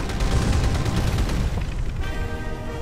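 A plane's engine roars.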